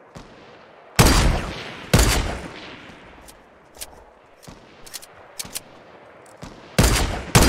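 A rifle fires loud, sharp shots that echo.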